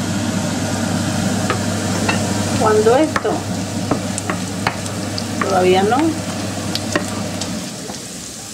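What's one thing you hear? Onions sizzle in a frying pan.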